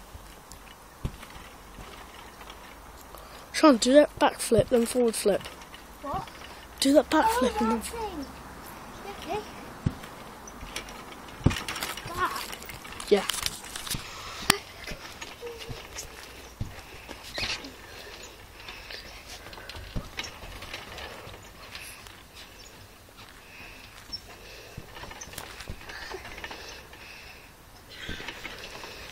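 A trampoline mat thumps and creaks as a child bounces.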